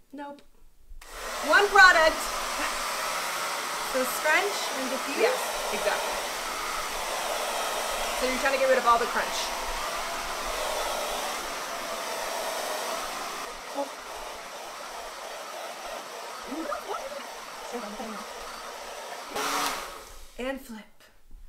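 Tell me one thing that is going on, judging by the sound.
A hair dryer blows with a steady whooshing hum.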